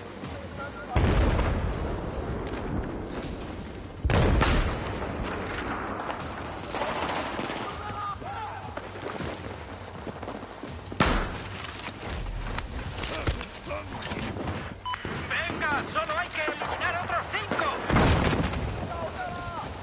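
A rifle fires loud, booming shots now and then.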